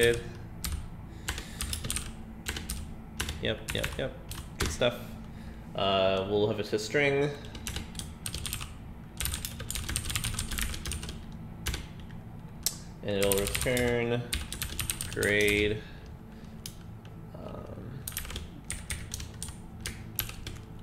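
Keys on a keyboard click rapidly.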